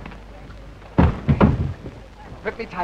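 Men scuffle and grapple with thumps and rustling.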